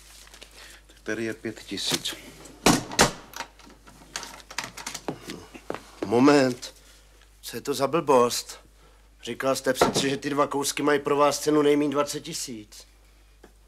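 A middle-aged man speaks firmly nearby.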